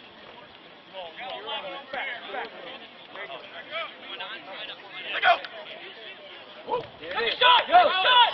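Young men shout and cheer loudly nearby outdoors.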